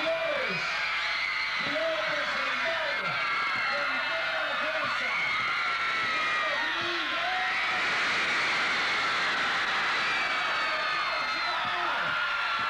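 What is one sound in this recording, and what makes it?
A large crowd screams and cheers loudly outdoors.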